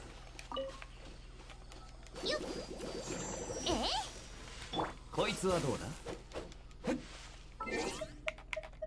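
Bright magical chimes and whooshes sparkle and swirl.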